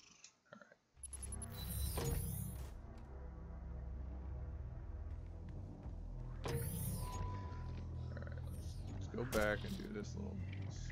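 A game's low, rumbling action sounds play loudly.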